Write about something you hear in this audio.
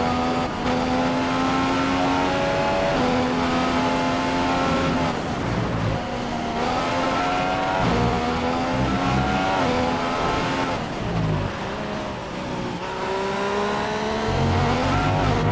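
A Formula One car's engine shifts up and down through the gears.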